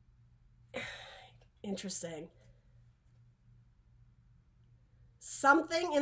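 A woman speaks calmly and close to a microphone, with pauses.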